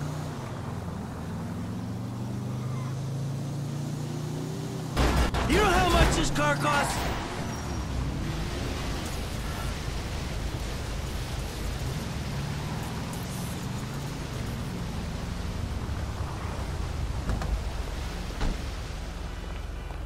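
A car engine hums and revs as the car drives.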